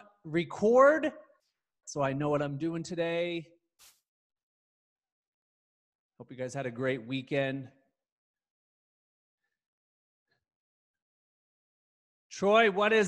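A young man talks with animation, close to a microphone, pausing between phrases.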